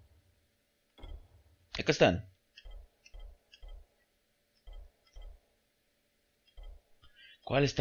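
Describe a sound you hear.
Soft menu clicks tick one after another as a selection moves down a list.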